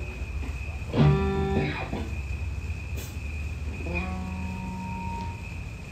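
An electric guitar plays a few notes.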